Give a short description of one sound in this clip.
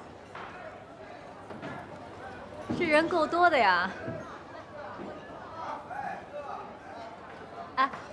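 Diners chatter in a busy room.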